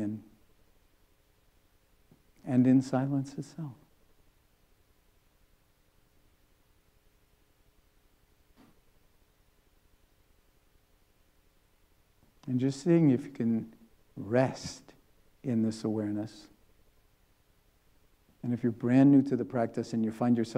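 An elderly man speaks calmly and slowly through a microphone, with long pauses.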